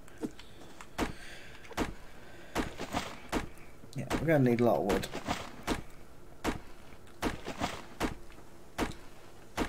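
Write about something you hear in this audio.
An axe chops into a tree trunk with repeated dull thuds.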